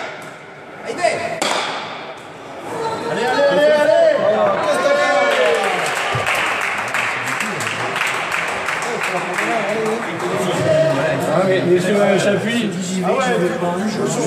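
A hard ball smacks against a wall in an echoing hall.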